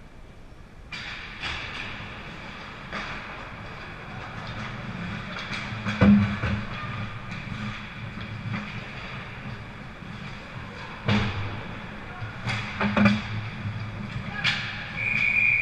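Hockey sticks and pucks clack sharply against the ice and boards.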